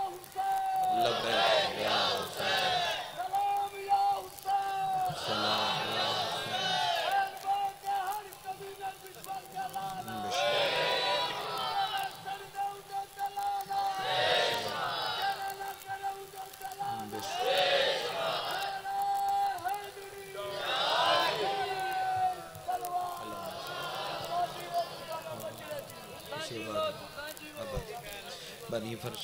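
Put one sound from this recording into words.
A man recites with strong emotion through a loudspeaker in an echoing space.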